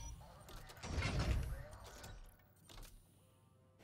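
A large mechanical robot roars and clanks.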